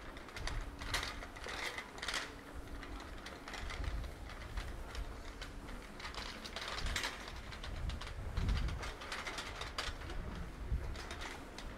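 Small trolley wheels rattle over paving stones.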